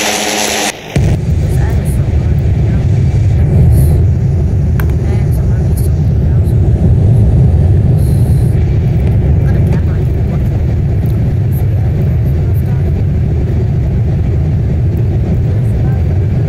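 Rocket engines roar with a steady, deep rumble.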